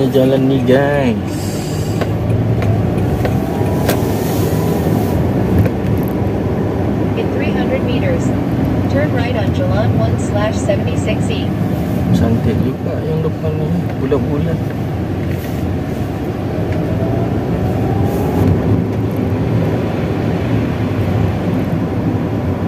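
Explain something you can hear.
Tyres rumble on wet asphalt, heard from inside a moving car.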